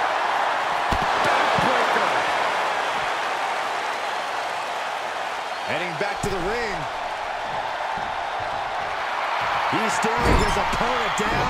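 Bodies slam onto a wrestling ring mat with heavy thuds.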